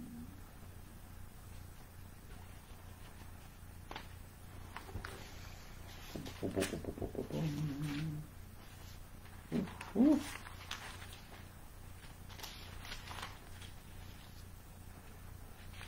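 Paper rustles and shuffles.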